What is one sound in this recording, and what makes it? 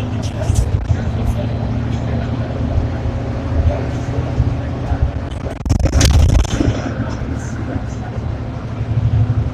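The bus rattles and clanks as it rolls along.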